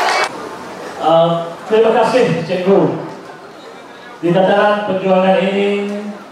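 A man speaks calmly into a microphone over a loudspeaker.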